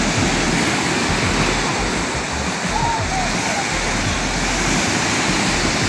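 Waves crash and roar onto the shore close by.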